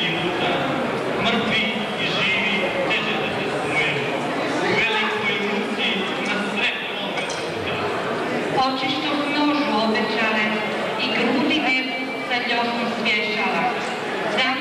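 A group of men and women sing together in a large echoing hall.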